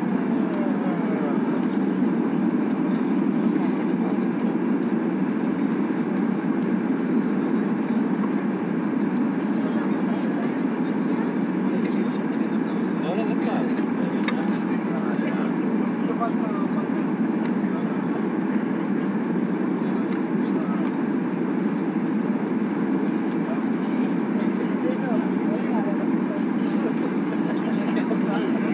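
Jet engines roar steadily inside an aircraft cabin.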